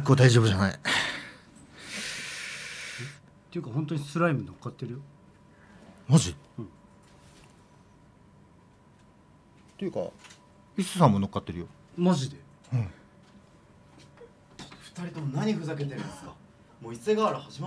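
Young men talk and laugh into microphones.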